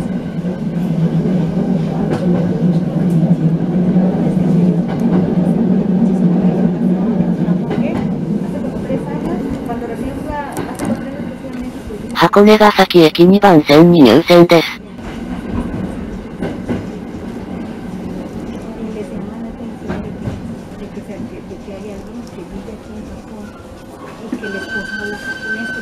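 A train rumbles along the tracks, its motor humming and slowly quieting as the train slows.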